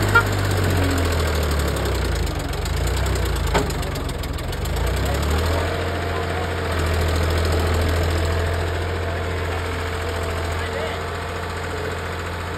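A tractor engine chugs steadily nearby.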